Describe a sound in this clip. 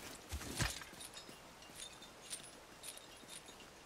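A metal chain clinks and rattles as someone climbs.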